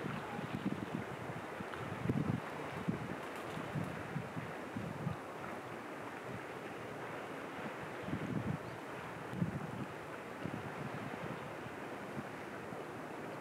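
Small waves lap gently against a rocky shore.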